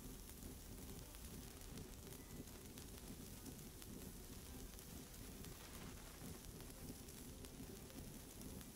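A cutting torch hisses steadily.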